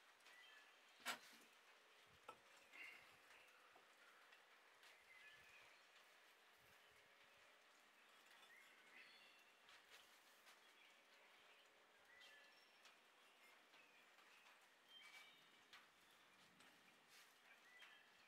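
Bricks clack and knock as they are set in place.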